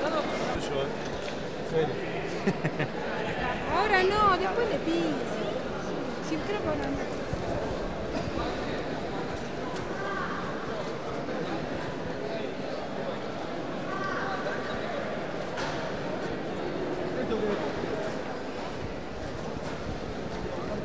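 A crowd of men and women chatters loudly all around in a large echoing hall.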